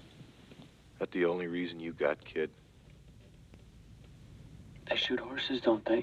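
A young man speaks quietly and tensely nearby.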